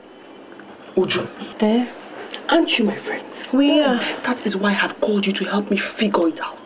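A young woman sobs and speaks in a crying voice.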